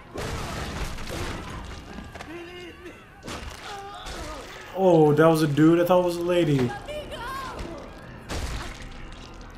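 Heavy blows land with dull thuds and splatters.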